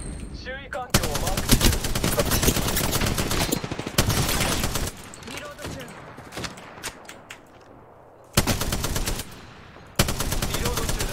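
A rapid-fire gun fires long, loud bursts.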